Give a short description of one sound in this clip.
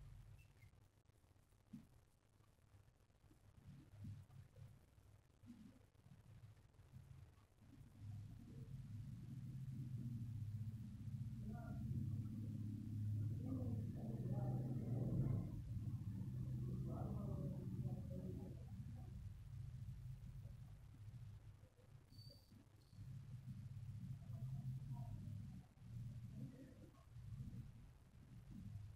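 A felt-tip marker scrapes softly across paper.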